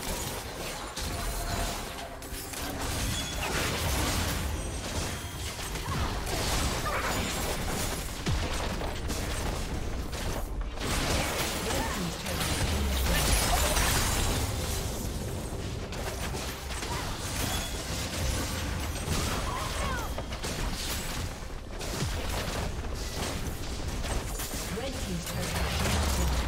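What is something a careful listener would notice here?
Spell blasts and weapon clashes ring out in a fast, busy game battle.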